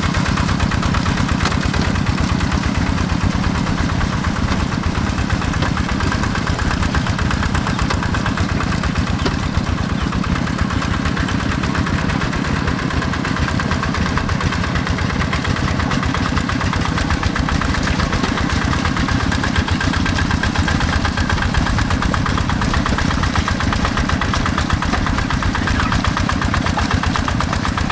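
A small diesel engine chugs loudly and steadily close by.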